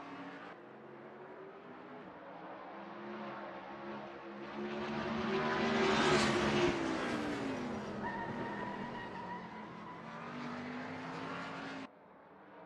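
Racing car engines whine loudly at high revs.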